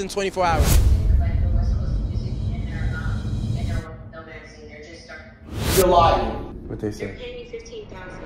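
A young man talks casually nearby.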